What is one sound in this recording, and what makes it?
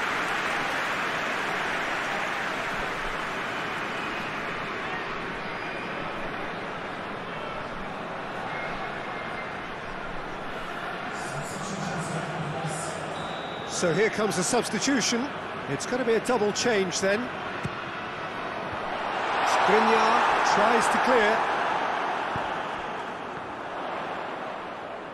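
A large stadium crowd roars and cheers steadily, swelling loudly at times.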